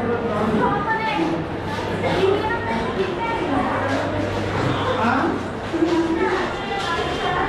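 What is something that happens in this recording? Footsteps shuffle on a stone floor.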